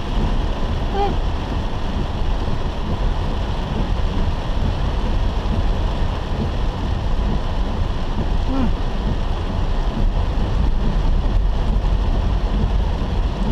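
A car's wipers swish back and forth across the windscreen.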